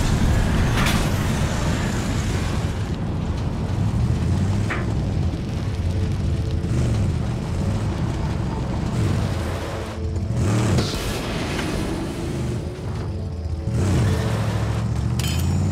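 Fire crackles on a burning car.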